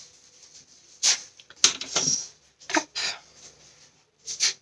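Cardboard scrapes and rustles as hands handle a box.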